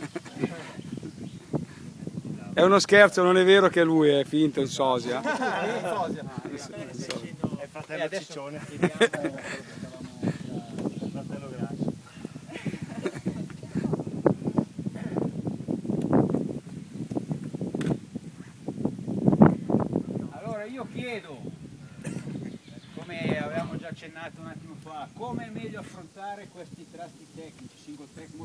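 A group of adult men talk and call out with animation close by.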